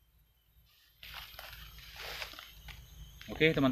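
Dry leaves rustle underfoot.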